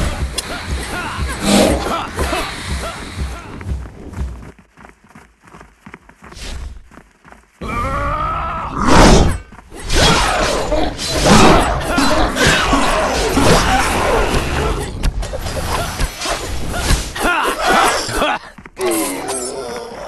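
Swords swish and clang in a fierce fight.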